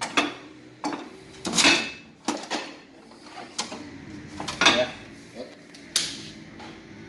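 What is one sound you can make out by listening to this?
A metal panel rattles and clanks as hands handle it.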